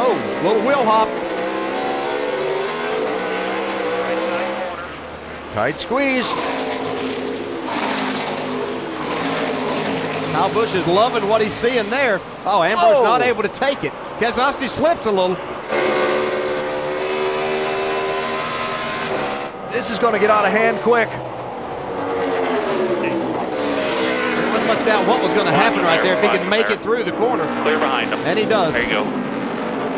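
Race car engines roar at high speed, rising and falling in pitch as the drivers shift and brake.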